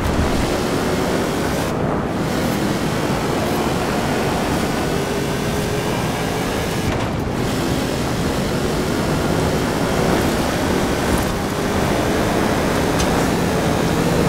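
A truck engine roars steadily as it speeds up through the gears.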